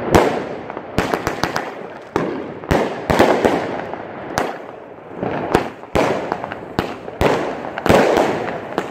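Fireworks bang and crackle loudly overhead, over and over.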